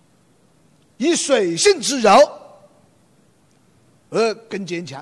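A man lectures with animation through a microphone in a large hall.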